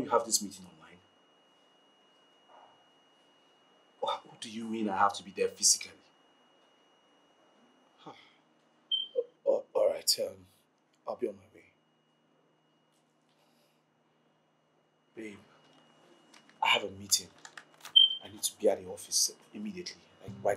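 A man talks on a phone close by, with animation.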